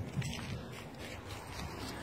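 A dog runs rustling through dry leaves.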